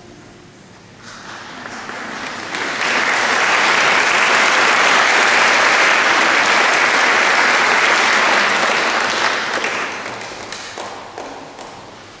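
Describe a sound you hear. An audience applauds loudly in a large echoing hall, then the clapping fades away.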